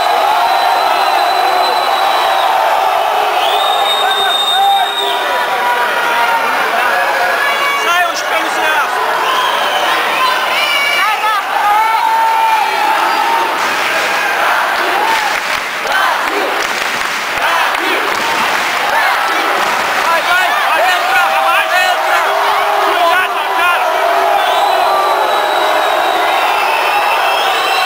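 A large crowd shouts and cheers in an echoing indoor arena.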